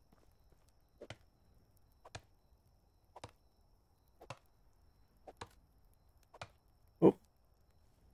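An axe chops into a tree trunk with regular knocks.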